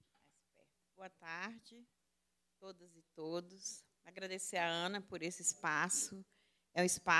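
A woman speaks with animation into a microphone, heard through a loudspeaker in a room.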